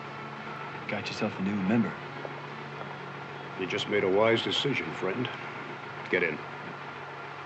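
A man speaks in a low voice inside a car.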